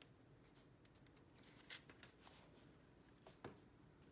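A strip of paper is peeled away with a light rustle.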